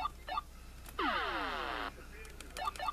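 A video game plays a short falling squealing tune.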